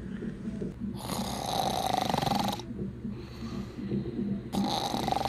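A person snores loudly in long, rasping breaths.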